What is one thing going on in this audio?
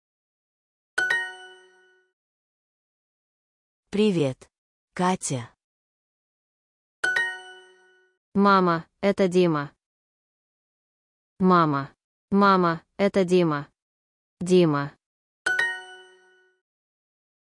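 A short bright chime rings several times.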